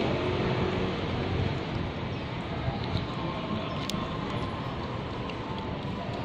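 A cat chews and licks food.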